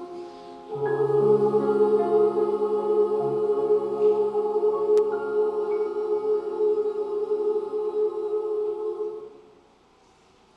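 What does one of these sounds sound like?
A large girls' choir sings a held chord in a hall.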